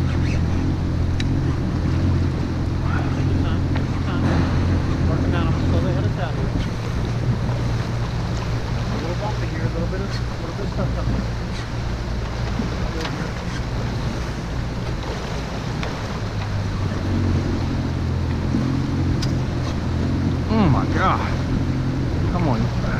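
A boat engine hums steadily nearby.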